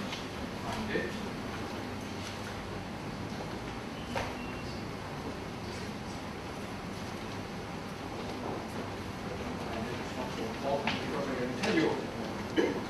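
Small objects knock and click on a table.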